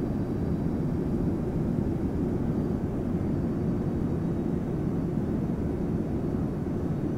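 A jet engine roars steadily, heard from inside the cabin.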